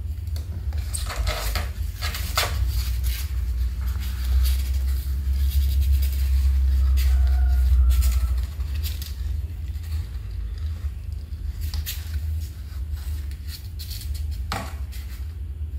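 Cardboard rustles and bumps as a cat shifts in a box.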